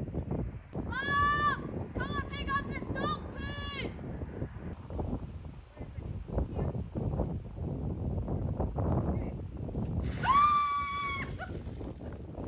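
A child shrieks in a high voice outdoors.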